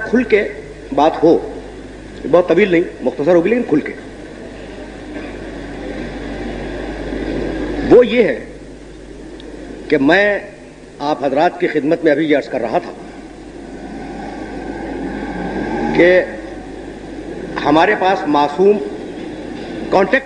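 An elderly man speaks slowly and earnestly into a microphone, with long pauses.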